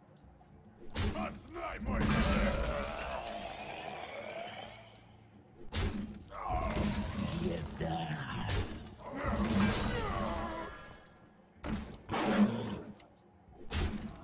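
Game cards strike and clash with bright effects.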